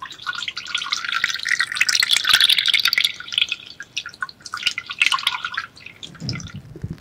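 Liquid pours and splashes into a bowl close to a microphone.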